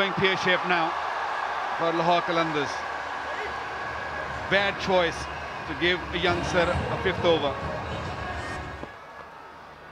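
A stadium crowd murmurs and cheers.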